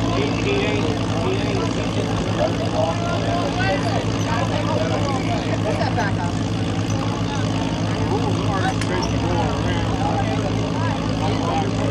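A man in a truck talks loudly with a man beside it.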